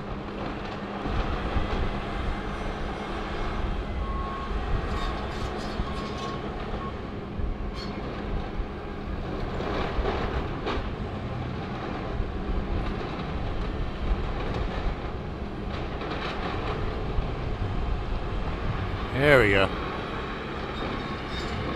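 Wood and roofing crack and crash as an excavator grapple tears down a building's roof.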